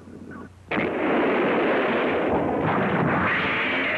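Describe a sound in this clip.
A loud explosion roars.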